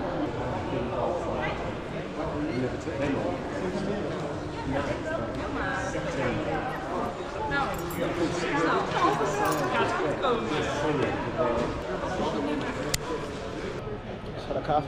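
People chatter in a large room.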